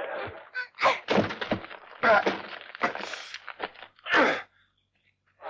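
Bodies thud onto straw.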